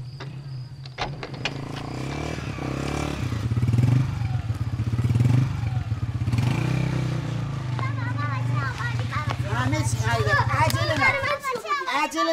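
A motorcycle engine idles with a low rumble.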